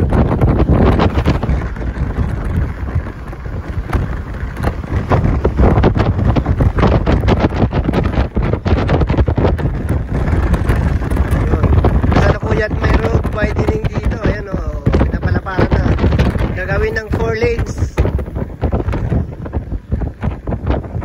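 Wind buffets and thumps against the microphone.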